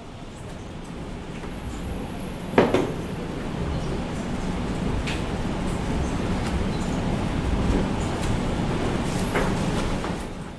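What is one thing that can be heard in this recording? A keyboard clicks as a man types.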